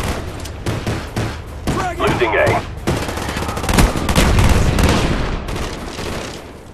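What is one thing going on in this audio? Gunfire bursts from a rifle in rapid shots.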